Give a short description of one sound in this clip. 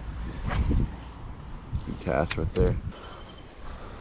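A fishing reel clicks as line is cast.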